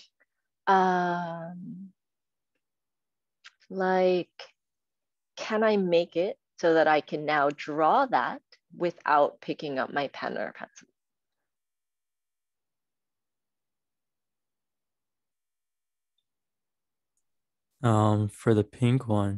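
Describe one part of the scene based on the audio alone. A young woman speaks calmly over an online call, pausing now and then.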